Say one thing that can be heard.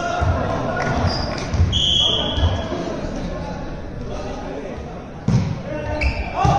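Shoes squeak sharply on a hard floor.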